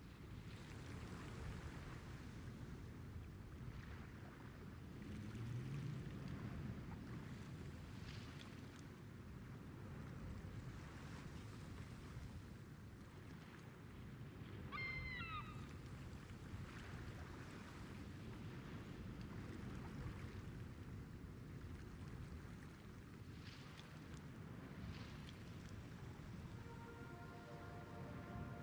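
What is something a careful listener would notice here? Water laps and swishes steadily against a ship's hull.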